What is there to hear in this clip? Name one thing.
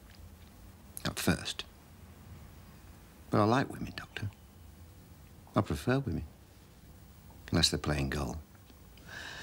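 A middle-aged man speaks slowly and calmly, close by.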